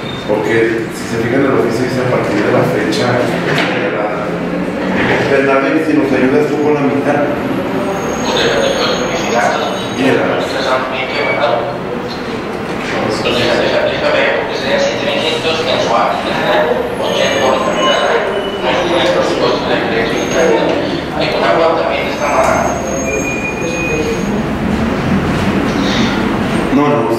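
Several adult men and women talk, their voices overlapping.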